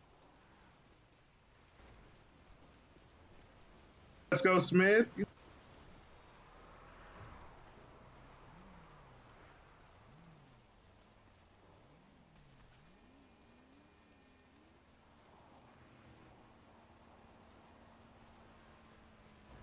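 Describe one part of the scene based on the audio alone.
Footsteps run across grass.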